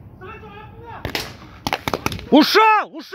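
A paintball marker fires several quick shots.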